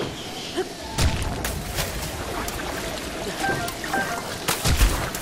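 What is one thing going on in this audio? Water splashes loudly as a body plunges in and swims.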